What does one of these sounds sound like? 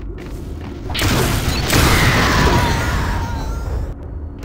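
An explosion booms and roars with fire.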